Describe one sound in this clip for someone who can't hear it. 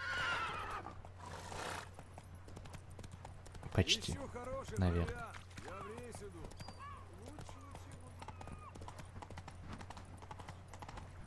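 A horse's hooves clop quickly on a paved road.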